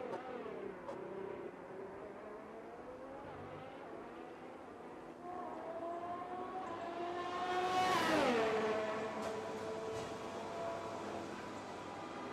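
A racing car engine screams at high revs, shifting gears, and roars past close by with a sudden drop in pitch.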